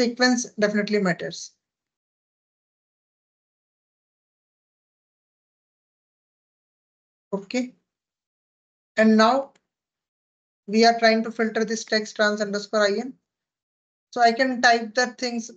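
A young man speaks calmly over an online call, pausing now and then.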